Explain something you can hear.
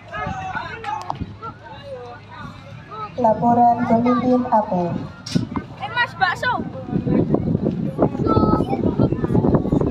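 A large crowd of people chatters and calls out outdoors.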